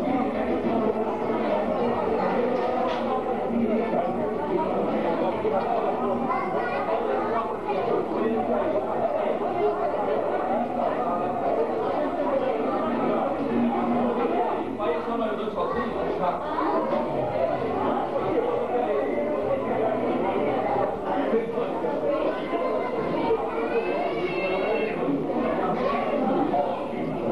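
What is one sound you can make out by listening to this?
A crowd of men and women chatters all around in a large echoing hall.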